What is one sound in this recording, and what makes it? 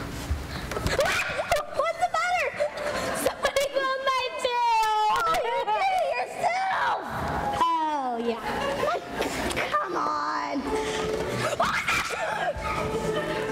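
Young girls sing a tune together, heard from a distance in an echoing hall.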